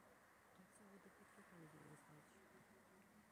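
A man murmurs quietly close by.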